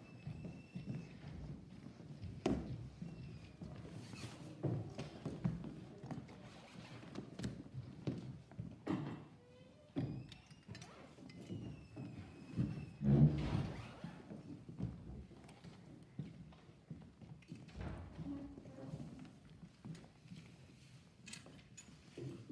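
Footsteps click on a hard floor in a large echoing room.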